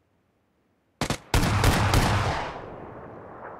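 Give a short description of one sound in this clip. Gunshots crack nearby in a quick burst.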